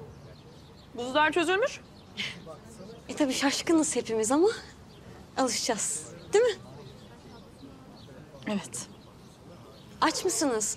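Another young woman answers with animation.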